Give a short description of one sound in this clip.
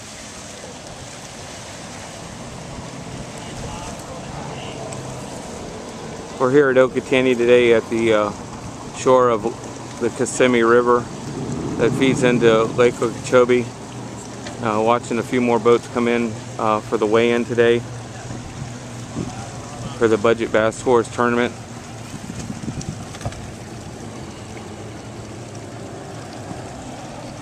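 A boat's motor drones steadily across the water.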